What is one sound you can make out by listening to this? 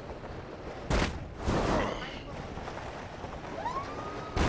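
A heavy body lands with a thud.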